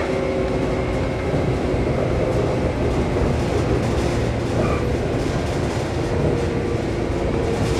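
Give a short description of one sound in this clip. A train rumbles steadily along the rails, heard from inside a carriage.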